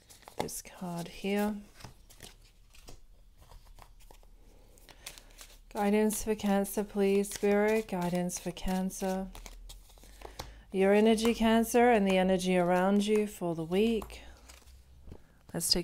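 Playing cards are laid down softly on a cloth.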